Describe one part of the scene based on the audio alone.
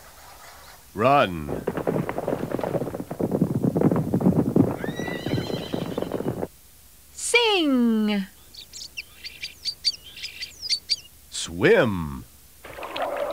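A man speaks in a silly, cartoonish voice.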